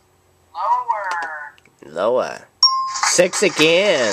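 An electronic game jingle plays as a card turns over.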